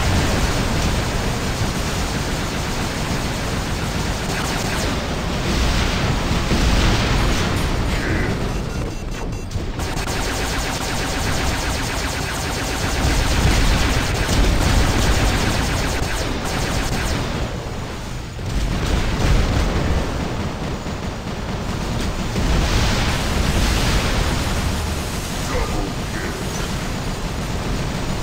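A low engine hum drones throughout.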